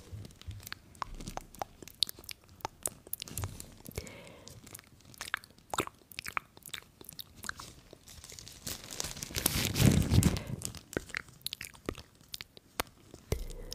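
Fabric gloves rub and brush against a microphone with soft scratchy crackles.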